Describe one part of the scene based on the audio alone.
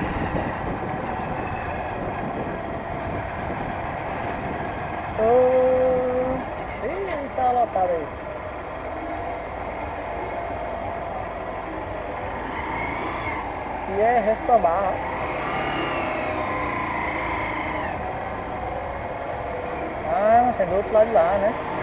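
A motorcycle engine runs with a steady low hum, close by.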